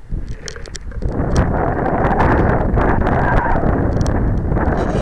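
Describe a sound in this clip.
Wind rushes loudly past a model glider as it speeds over the ground.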